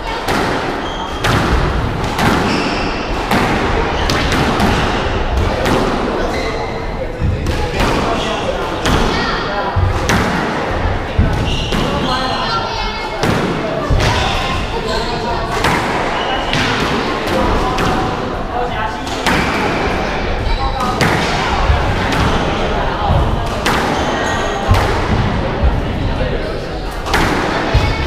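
A squash ball smacks sharply against the walls over and over in an echoing court.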